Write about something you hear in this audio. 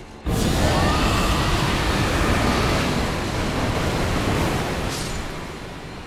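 A blood spell bursts and roars in a loud, rushing whoosh.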